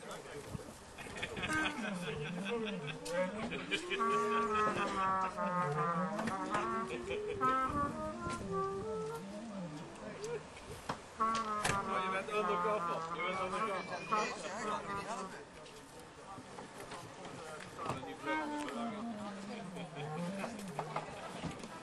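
Men talk with one another nearby outdoors.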